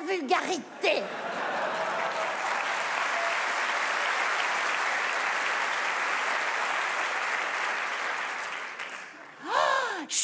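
A large audience laughs and applauds.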